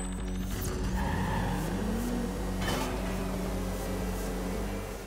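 Kart engines hum steadily as they race.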